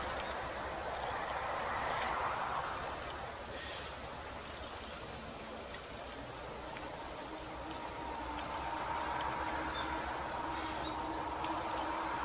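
A jet engine roars steadily far overhead.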